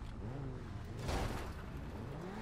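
A car crashes through a barrier with a loud thud.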